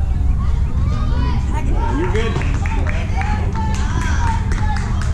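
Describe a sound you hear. Young players and spectators shout and cheer from a distance.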